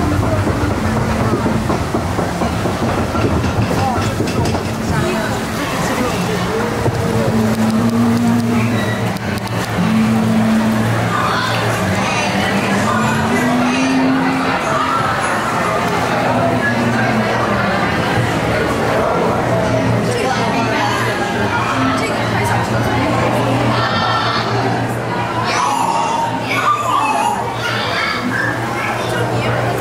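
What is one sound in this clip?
Water rushes and splashes along a channel.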